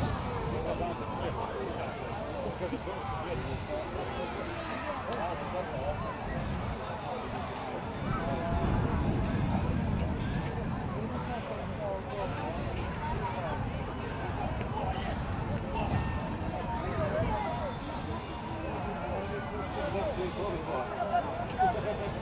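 Young boys shout to each other across an open field.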